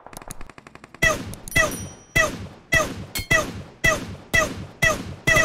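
Rapid gunshots ring out in a steady rhythm.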